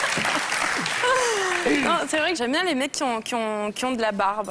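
A young woman speaks in a high, sing-song voice.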